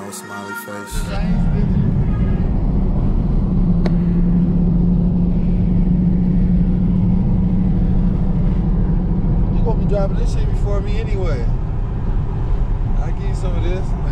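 A car engine hums steadily while driving on a road.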